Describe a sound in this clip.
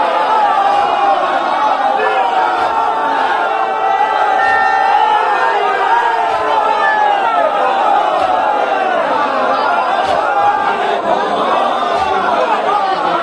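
A large crowd of men chants loudly together in unison.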